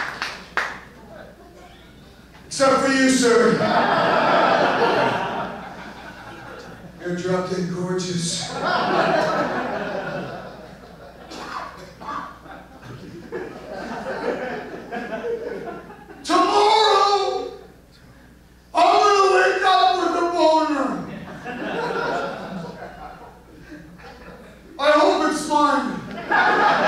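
A man talks with animation into a microphone, heard through loudspeakers in a large hall.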